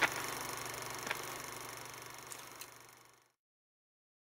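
Boots tap on a paved path as a person walks.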